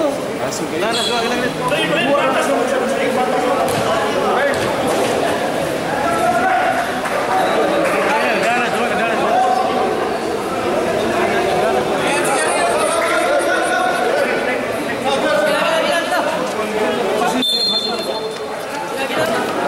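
A crowd of young people chatter and call out nearby in an echoing gym.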